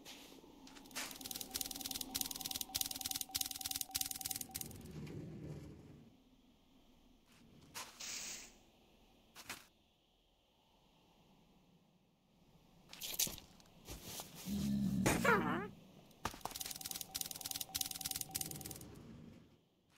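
Footsteps crunch quickly on sand.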